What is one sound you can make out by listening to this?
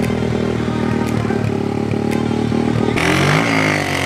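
A dirt bike engine idles loudly close by.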